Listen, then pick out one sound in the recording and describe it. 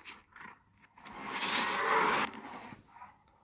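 A healing chime swells and fades.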